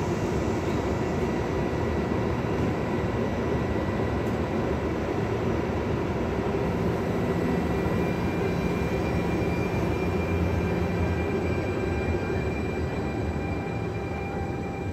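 An electric passenger train rumbles past on the rails.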